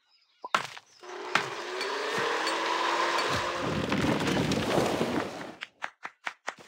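A wooden shed collapses with a long crumbling rumble.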